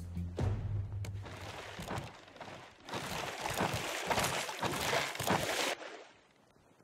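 Water splashes and sloshes against a paddle.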